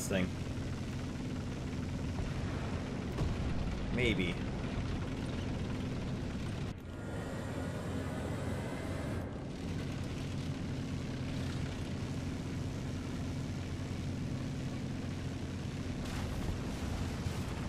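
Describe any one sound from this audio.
Tank tracks clatter over cobblestones.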